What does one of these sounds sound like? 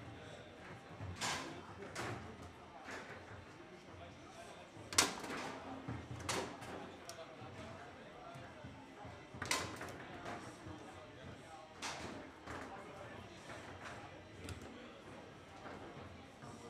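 Foosball rods clatter and spin in quick bursts.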